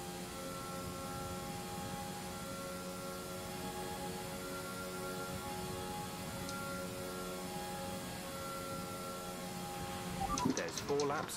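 A racing car engine screams steadily at high speed.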